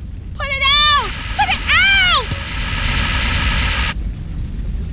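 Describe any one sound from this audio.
A fire extinguisher hisses as it sprays.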